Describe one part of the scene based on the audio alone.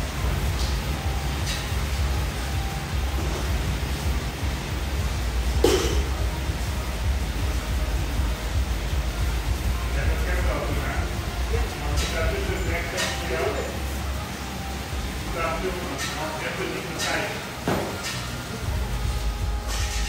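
Sneakers step on a hard floor.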